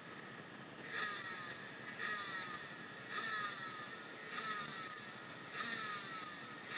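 A motorcycle engine revs in short, sharp bursts.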